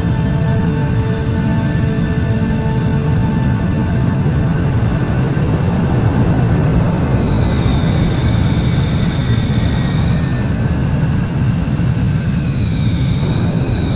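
A jet engine roars steadily with a shifting whine.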